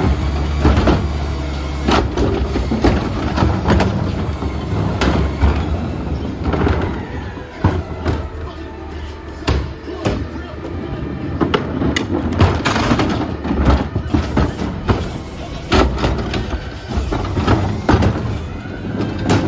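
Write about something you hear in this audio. A hydraulic lift whines as it tips a bin.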